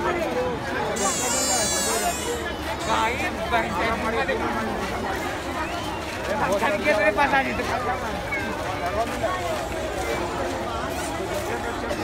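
A large crowd chatters loudly all around outdoors.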